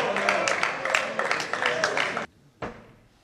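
Spectators clap.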